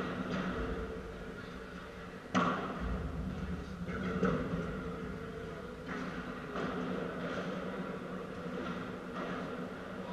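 Men talk at a distance in an echoing hall.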